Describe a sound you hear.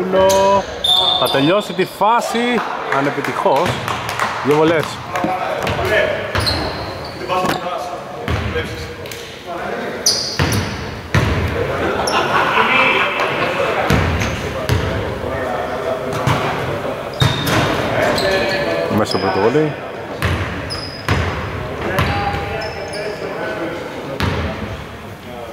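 Men call out to each other across the court.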